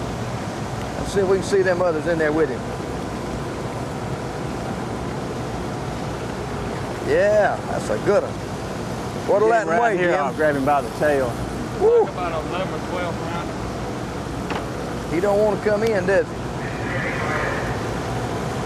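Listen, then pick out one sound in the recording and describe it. A steady rumble of a boat engine and wind runs throughout.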